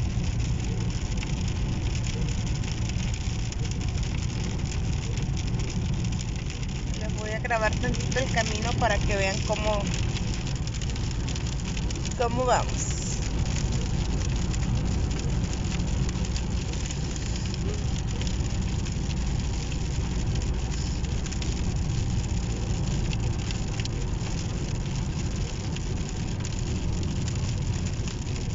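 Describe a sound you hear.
A car engine hums with a steady low road rumble from inside the car.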